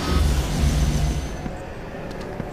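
A magical energy blast crackles and whooshes.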